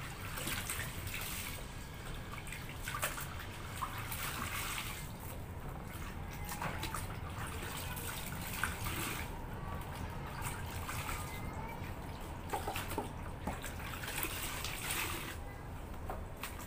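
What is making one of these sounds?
Water splashes softly in a tub as a small child plays in it.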